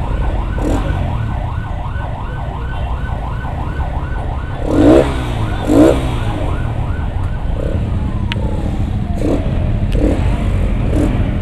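Heavy truck engines rumble nearby.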